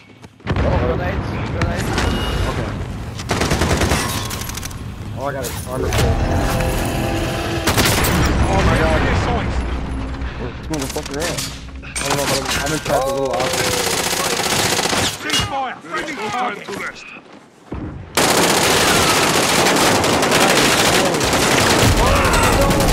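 Gunfire crackles in short bursts.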